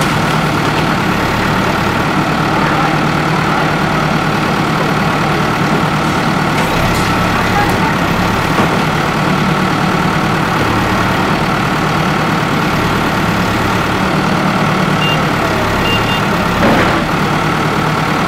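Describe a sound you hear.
A backhoe engine rumbles steadily close by.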